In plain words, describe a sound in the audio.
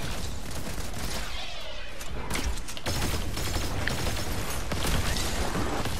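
Gunfire and energy blasts crackle in a video game.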